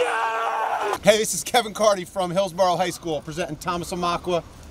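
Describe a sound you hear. A young man speaks with excitement close by.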